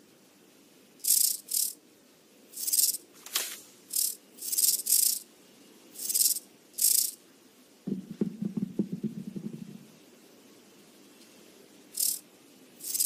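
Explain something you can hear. Stone discs swish softly as they rotate, again and again.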